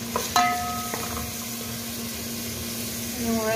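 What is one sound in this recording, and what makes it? Food sizzles gently in a pot.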